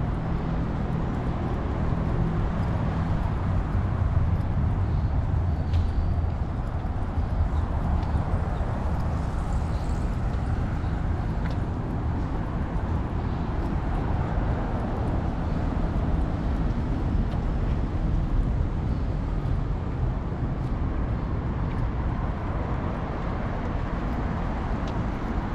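Traffic hums steadily from a nearby road.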